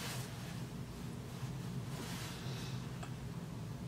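A woman blows her nose into a tissue.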